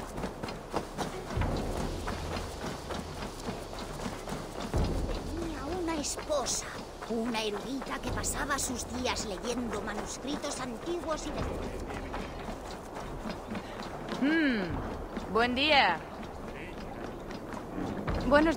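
Footsteps run quickly along a dirt path and onto wooden planks.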